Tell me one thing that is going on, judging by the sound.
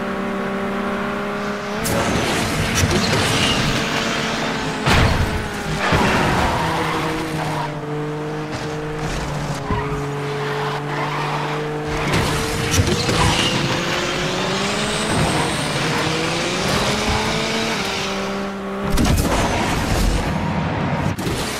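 A race car engine roars at high speed, its pitch rising and falling with gear changes.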